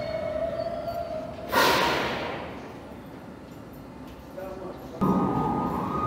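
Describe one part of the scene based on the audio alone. A subway train hums while standing at a platform.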